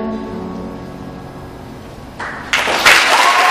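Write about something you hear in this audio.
A group of performers holds a final chord that fades out.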